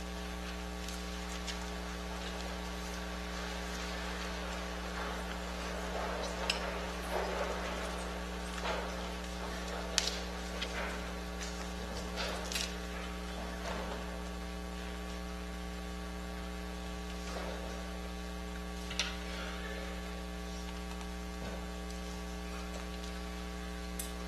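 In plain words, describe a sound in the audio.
People shuffle and move about softly in a large echoing hall.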